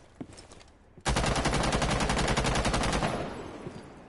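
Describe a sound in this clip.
A rifle fires a rapid, loud burst of shots that echoes away.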